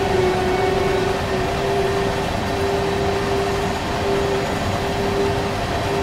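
A freight train rumbles steadily along the rails.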